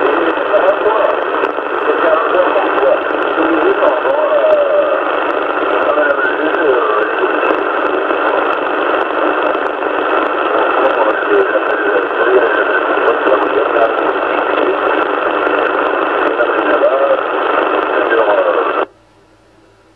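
Radio static hisses and crackles from a receiver's loudspeaker.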